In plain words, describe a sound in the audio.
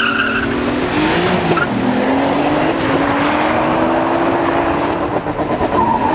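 A car engine roars loudly as it accelerates, rising in pitch.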